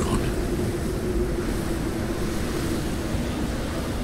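A man speaks in a deep, calm voice.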